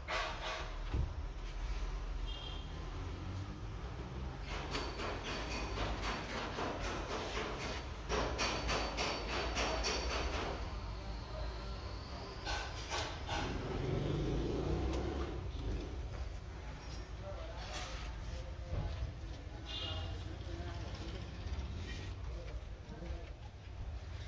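A foam sheet rustles and scrapes against a metal roof as it is fitted.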